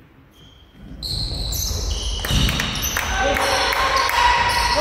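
Sneakers squeak sharply on a wooden floor as players run.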